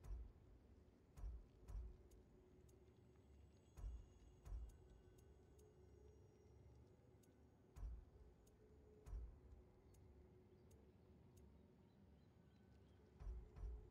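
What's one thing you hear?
Soft thuds sound as a menu selection steps from item to item.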